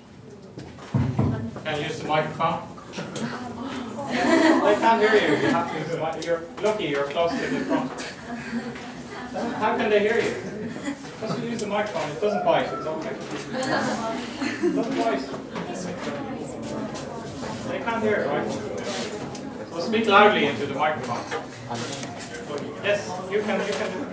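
A man lectures steadily in an echoing room, heard from a distance.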